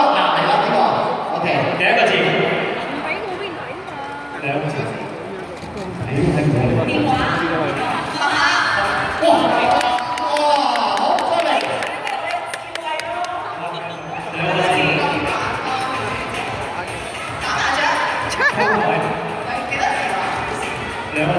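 A woman speaks through a microphone over loudspeakers.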